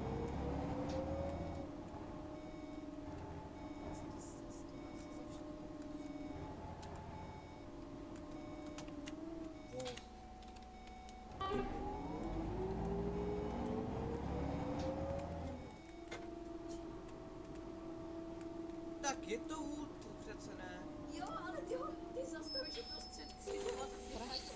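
A bus engine hums and whines as it drives along.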